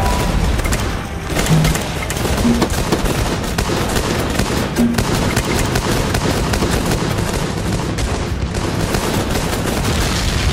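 Automatic gunfire rattles in a video game.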